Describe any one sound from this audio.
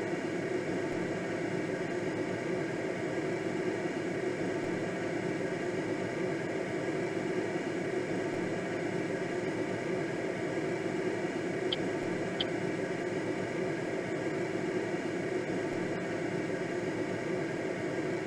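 Wind rushes steadily over a gliding aircraft.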